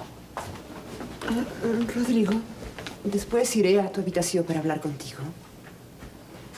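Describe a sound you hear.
A woman speaks in reply.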